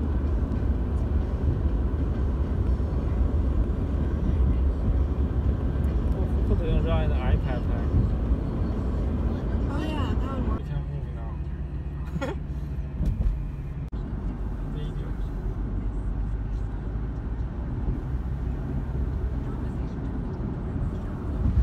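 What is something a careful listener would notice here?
Road noise rumbles steadily from inside a moving car.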